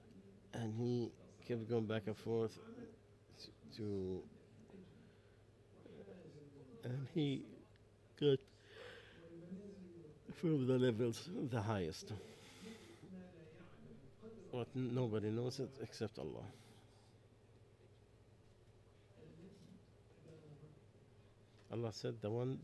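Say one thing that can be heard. An elderly man speaks calmly and with animation into a close microphone, with pauses.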